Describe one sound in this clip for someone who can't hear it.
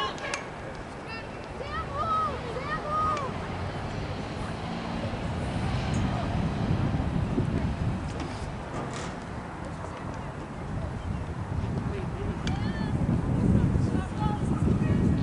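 Wind rumbles across an open field.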